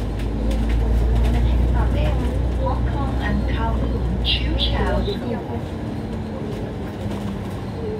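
Traffic hums along a busy street outdoors.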